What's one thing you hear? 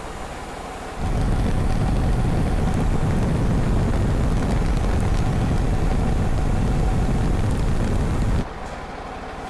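A heavy diesel crane truck's engine strains under load.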